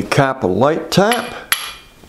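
A mallet taps on metal.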